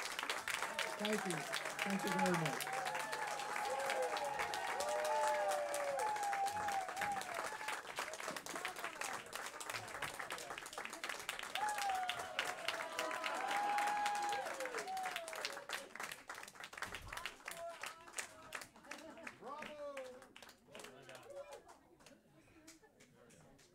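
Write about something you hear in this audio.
An audience applauds loudly and the clapping slowly fades.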